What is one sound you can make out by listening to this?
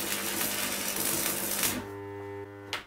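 An electric welder crackles and hisses steadily.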